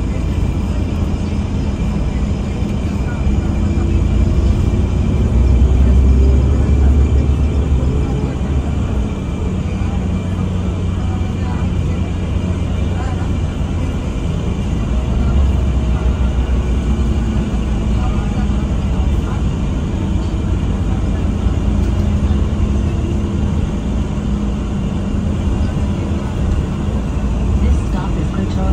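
The bus rattles and hums as it rolls over the road.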